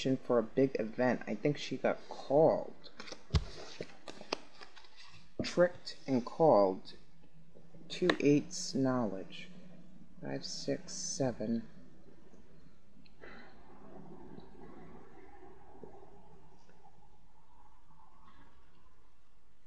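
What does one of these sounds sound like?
Playing cards rustle softly as a hand shifts them.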